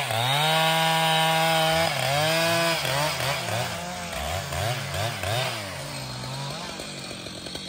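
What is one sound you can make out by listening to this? A chainsaw roars loudly as it cuts through a log.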